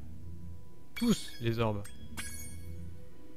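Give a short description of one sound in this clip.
A bright game chime rings out.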